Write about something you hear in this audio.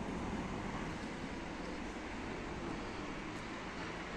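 A car drives past close by on a paved street.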